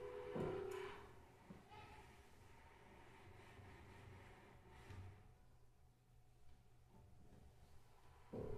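A small ensemble plays quiet, sparse music.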